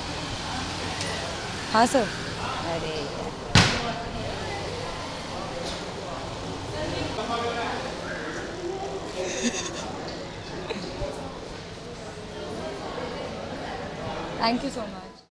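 A young woman speaks calmly and cheerfully close by.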